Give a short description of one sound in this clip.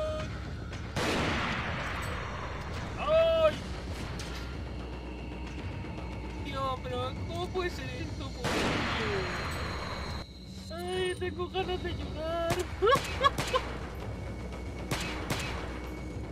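Gunshots ring out loudly, one at a time, with echoes.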